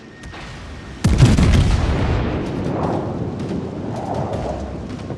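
A heavy explosion booms and rumbles slowly away.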